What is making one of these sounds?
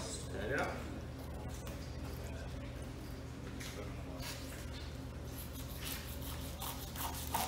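A knife slices through raw fish with soft scraping sounds.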